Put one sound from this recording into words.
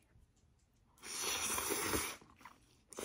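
A woman slurps noodles loudly, close by.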